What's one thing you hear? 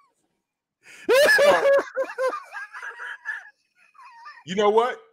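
A second man laughs over an online call.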